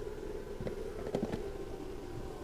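A plastic case clicks and rattles.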